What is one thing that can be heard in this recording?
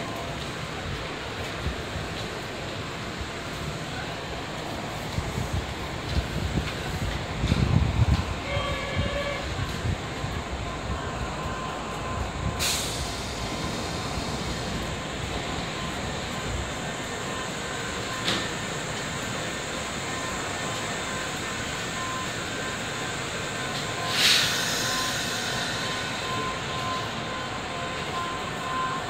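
An electric commuter train hums while standing at a platform.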